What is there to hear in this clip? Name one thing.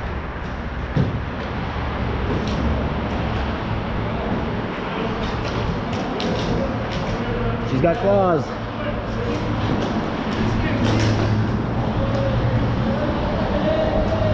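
Hockey sticks clack sharply now and then.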